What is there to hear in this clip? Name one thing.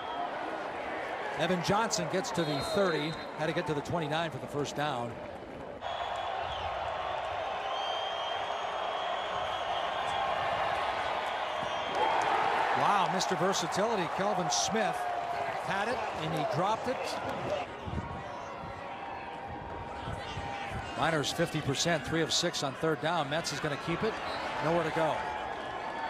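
A large crowd cheers and roars in an open stadium.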